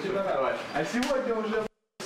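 Two young men slap their hands together in a high five.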